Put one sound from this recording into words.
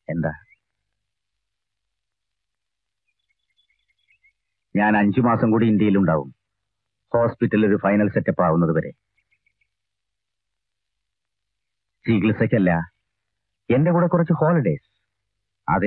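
A man speaks calmly and closely, in short phrases with pauses.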